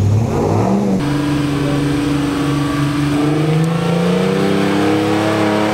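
A pickup truck's engine revs up, rising in pitch as it climbs.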